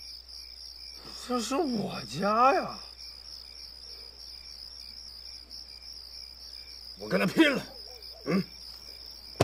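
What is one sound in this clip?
A young man speaks with feeling, close by.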